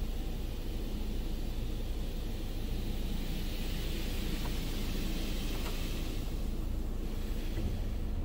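Water sprays hard against a car's windows and roof.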